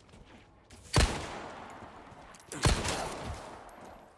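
A handgun fires loud shots that ring out.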